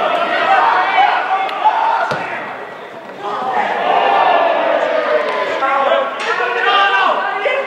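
Men shout to one another across an open field outdoors.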